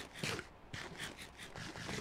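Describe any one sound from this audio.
Crunchy chewing sounds come from a game character eating.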